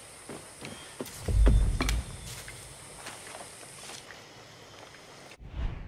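Footsteps crunch on wet gravel.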